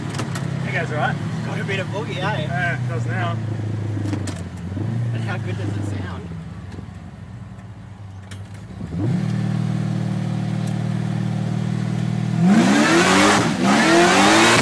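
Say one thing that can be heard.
A car engine rumbles steadily from inside the car.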